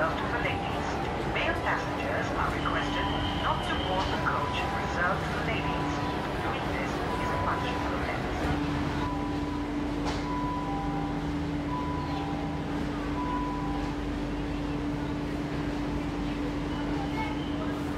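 A metro train rumbles and hums steadily as it moves.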